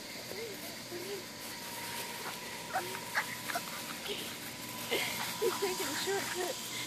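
Puppies yip and whine close by.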